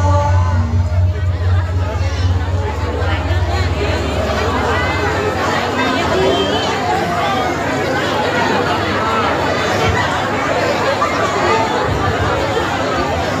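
A gamelan ensemble plays steadily through loudspeakers outdoors.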